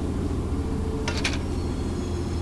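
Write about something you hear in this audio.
A metal lever clanks as it is pulled.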